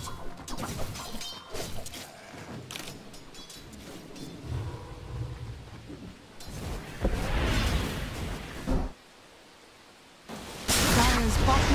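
Weapons strike and clash in a game battle.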